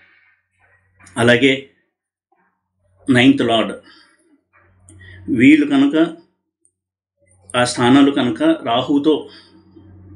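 A middle-aged man speaks with emphasis in short bursts, close to a microphone.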